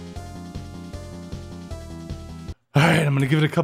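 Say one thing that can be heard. A chiptune video game melody plays briefly.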